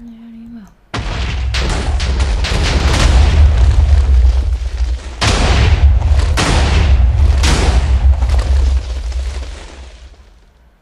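A long chain of explosions booms and rumbles.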